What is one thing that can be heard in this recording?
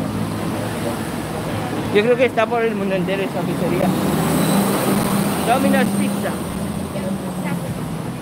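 A bus engine rumbles close by as the bus passes.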